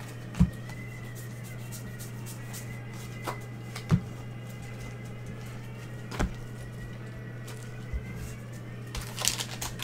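Cards shuffle and tap together in handling.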